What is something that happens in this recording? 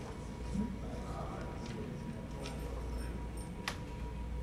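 Papers rustle as a woman handles them.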